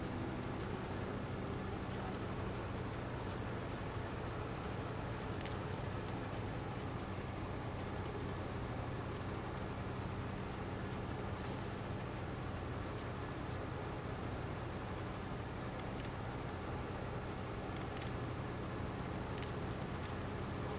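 A truck engine rumbles steadily as it crawls over rough ground.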